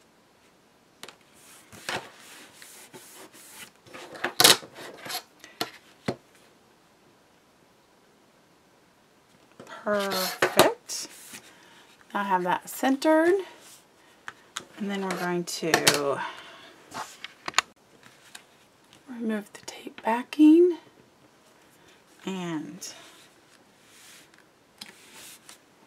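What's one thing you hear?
Paper rustles and crinkles as it is folded and pressed flat.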